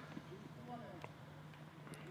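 A tennis ball is struck with a racket with a sharp pop.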